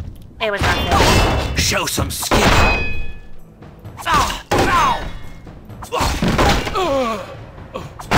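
A sword slashes and strikes flesh.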